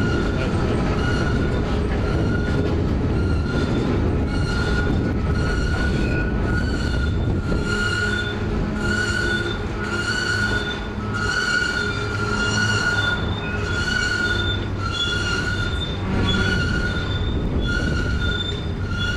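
A long freight train rumbles past on the tracks.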